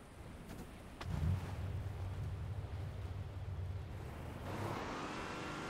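A vehicle engine rumbles as it drives over grass.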